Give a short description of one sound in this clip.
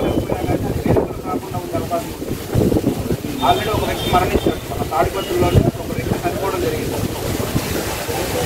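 A man speaks steadily and continuously.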